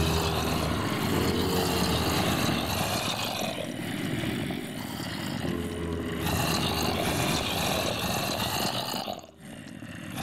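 Zombies groan and moan in a crowd.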